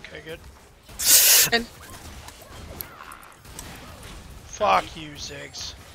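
Magic spells burst and whoosh in a fight between game characters.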